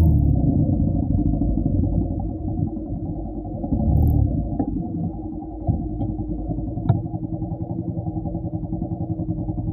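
Motorcycle engines idle nearby with a low throb.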